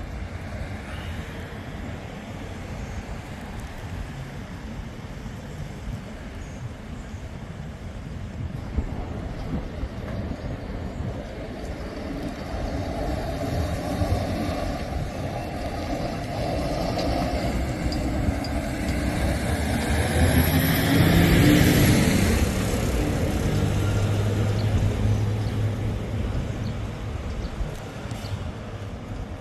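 Road traffic hums steadily outdoors in a city street.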